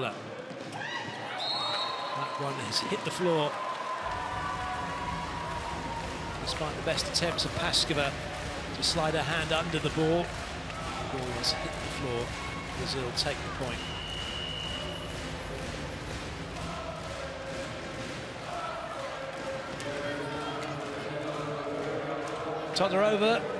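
A large crowd cheers and chatters in an echoing arena.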